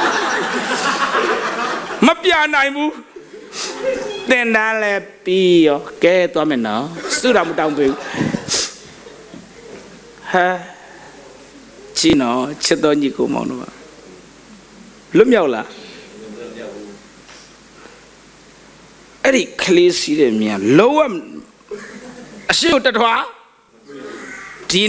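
A man speaks with animation through a microphone, echoing in a large hall, with pauses.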